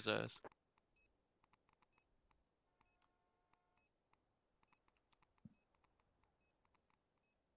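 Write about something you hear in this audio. An electronic bomb beeps at a steady pace.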